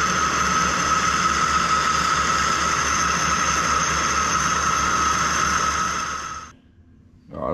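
A metal lathe spins with a steady whirring hum and a high whine.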